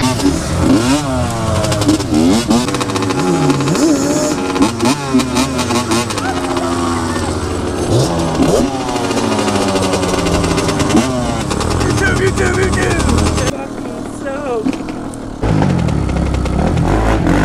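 A quad bike engine rumbles.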